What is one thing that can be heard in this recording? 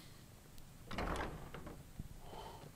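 A heavy wooden door swings open.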